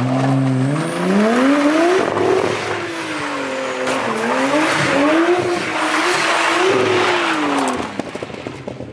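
Car tyres screech on tarmac.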